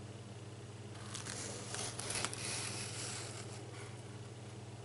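A paper page rustles and crinkles as it is handled.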